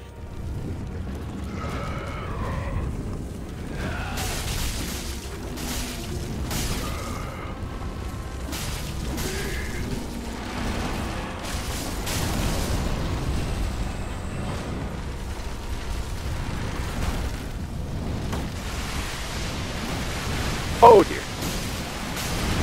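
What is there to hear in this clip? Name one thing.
Swords slash and strike against a large creature.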